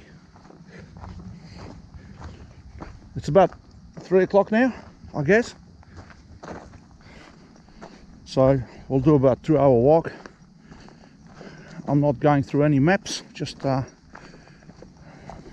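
Footsteps crunch steadily on a dry dirt path.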